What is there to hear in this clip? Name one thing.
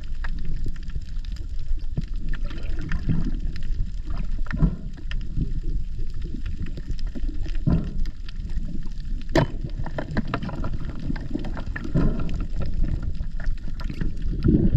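Water rumbles and crackles close by underwater.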